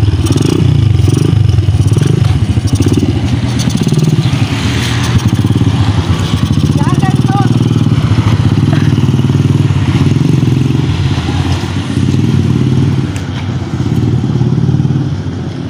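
A small motorcycle engine putters and revs as the motorcycle pulls away.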